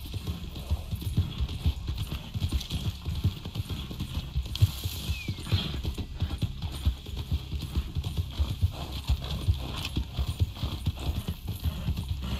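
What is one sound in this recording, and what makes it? A horse gallops with rapid hoofbeats on soft ground.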